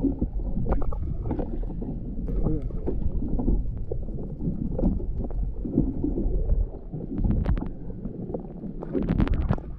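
Water rumbles and gurgles in a low, muffled way underwater.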